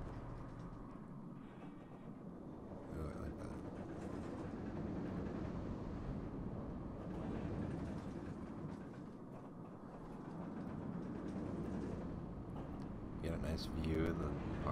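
A roller coaster train rumbles steadily along its track.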